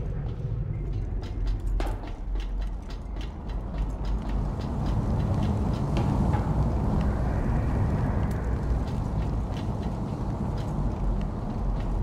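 Flames roar and crackle nearby.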